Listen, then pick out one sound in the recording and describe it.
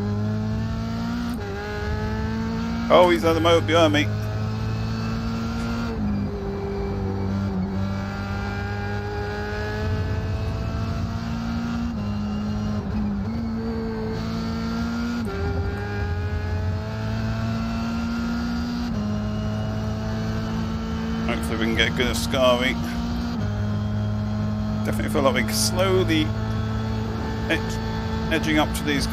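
A racing car engine revs high, rising and dropping with each gear change.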